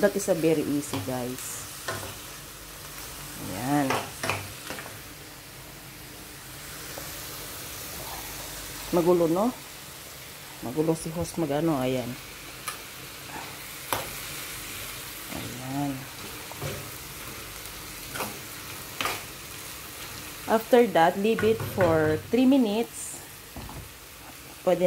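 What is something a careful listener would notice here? Shrimp sizzle in a hot frying pan.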